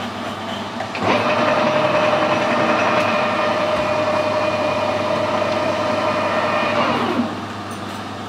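A lathe motor whirs steadily, then winds down.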